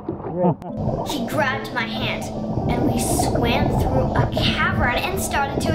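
Scuba divers breathe through regulators, with bubbles gurgling and bursting underwater.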